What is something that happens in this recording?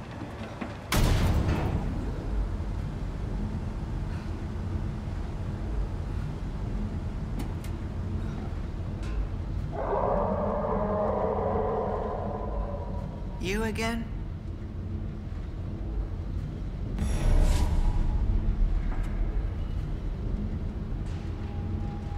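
A metal cage lift clanks and rumbles steadily as it moves.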